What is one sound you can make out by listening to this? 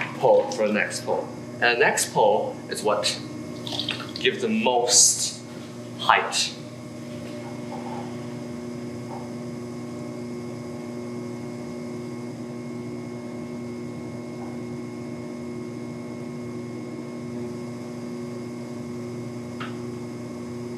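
A potter's wheel motor hums steadily.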